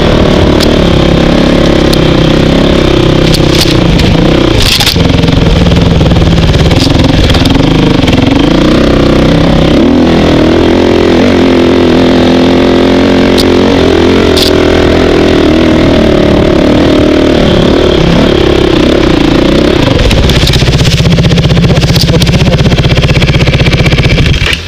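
A dirt bike engine roars close by, revving up and down.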